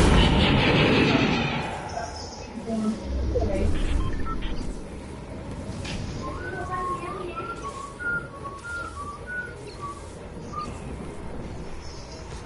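Wind rushes steadily past a game character gliding down through the air.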